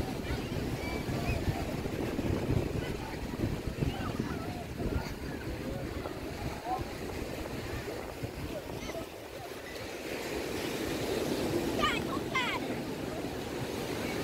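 A crowd of beachgoers chatters in the distance, outdoors.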